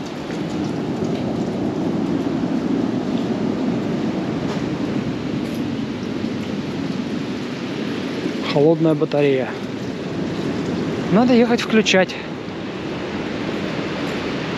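Wind blows steadily outdoors, buffeting the microphone.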